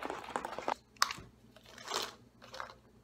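Capsules rattle in a plastic container.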